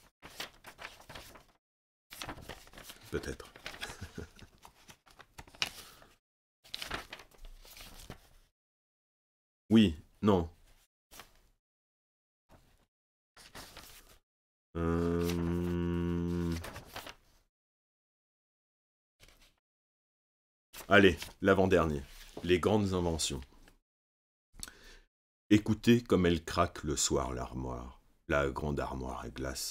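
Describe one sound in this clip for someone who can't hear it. A middle-aged man reads aloud calmly into a microphone, with pauses.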